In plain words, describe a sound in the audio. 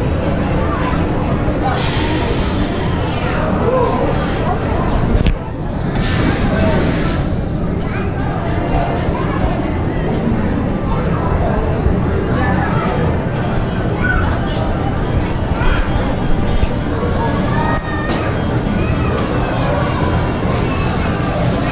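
A roller coaster train rattles and roars loudly along a wooden track.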